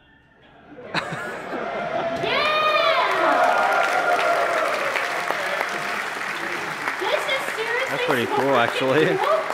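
An audience murmurs and chatters.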